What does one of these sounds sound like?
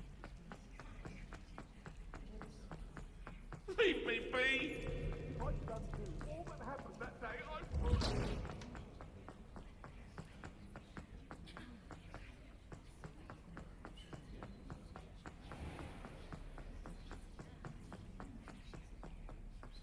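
Footsteps run quickly on a stone floor, echoing slightly.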